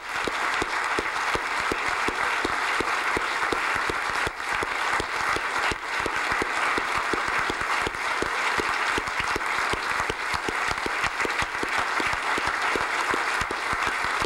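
A large crowd applauds loudly and steadily in an echoing hall.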